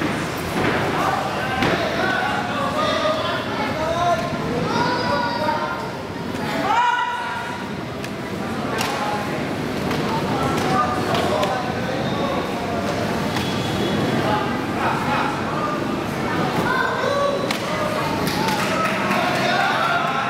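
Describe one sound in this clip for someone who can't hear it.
Gloved punches thud against a fighter now and then.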